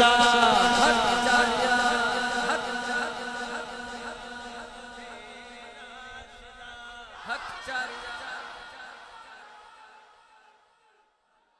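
A man chants with animation through a loudspeaker, then fades away.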